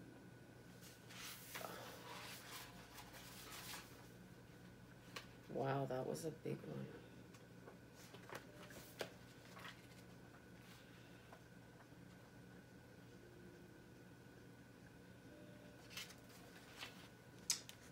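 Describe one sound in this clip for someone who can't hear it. Paper pages rustle as a book is leafed through.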